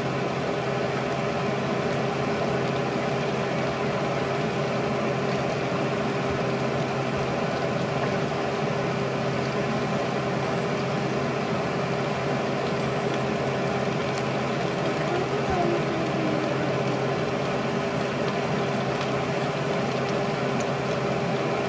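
Wind blows hard across an open outdoor space.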